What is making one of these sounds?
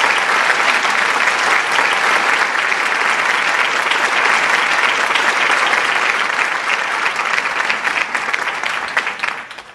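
A crowd applauds steadily, then the clapping thins out and fades.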